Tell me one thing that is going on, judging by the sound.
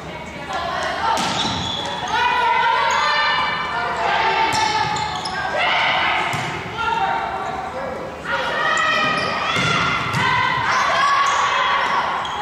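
Sneakers squeak loudly on a wooden floor.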